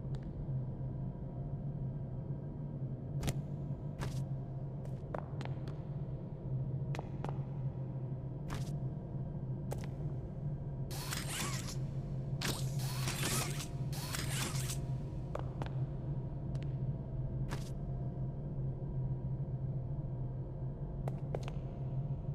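Cardboard boxes knock and thud against a hard floor.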